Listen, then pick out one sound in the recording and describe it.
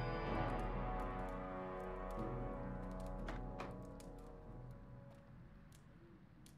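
Game music plays with a low drone that fades away.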